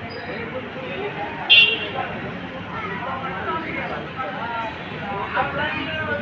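A crowd of people talks and murmurs outdoors.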